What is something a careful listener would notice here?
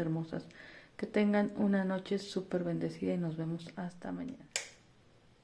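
A woman speaks softly and calmly close to a microphone.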